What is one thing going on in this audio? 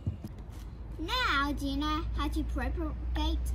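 A young girl talks calmly and clearly close by.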